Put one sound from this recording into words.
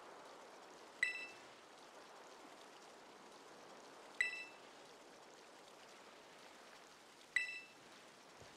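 A short bright chime sounds several times.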